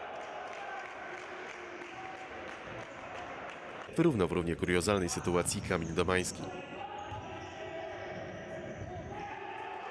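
Sneakers squeak on a wooden floor in an echoing hall.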